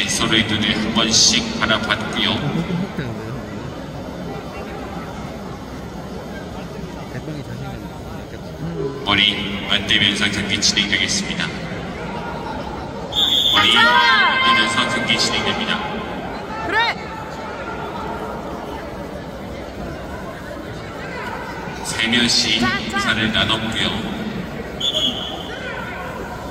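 Men shout loudly to urge on bulls outdoors.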